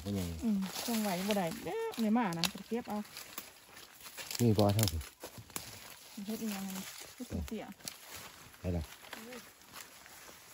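A man speaks close by, with pauses.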